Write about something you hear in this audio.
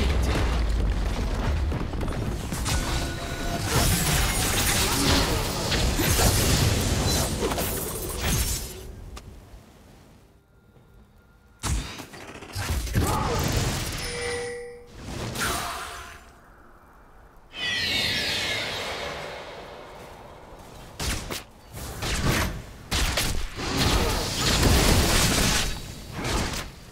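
Magic spells blast and crackle in a busy fight.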